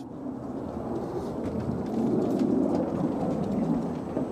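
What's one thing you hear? Skate wheels clatter over wooden boards.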